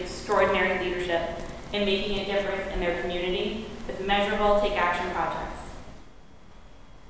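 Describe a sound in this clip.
A woman speaks into a microphone, reading out calmly.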